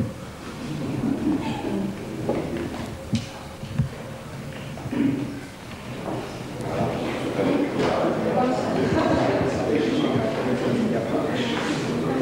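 A crowd of men and women chatter and talk over one another in a room.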